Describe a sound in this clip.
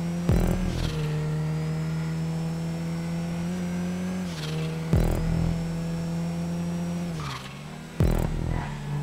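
A car thumps hard as it hits bumps in the road.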